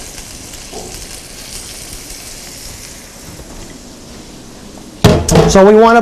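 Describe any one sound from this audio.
Fish sizzles quietly in a hot pan.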